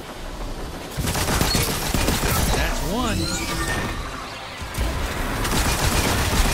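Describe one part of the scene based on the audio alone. Energy blasts whoosh and crackle loudly.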